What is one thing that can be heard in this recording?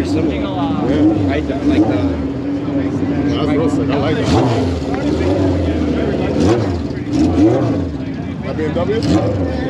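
A crowd of men and women chat outdoors nearby.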